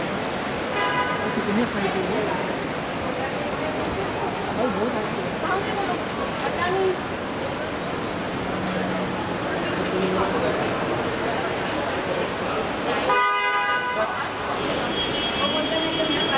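A crowd of people chatters and calls out loudly in a large echoing hall.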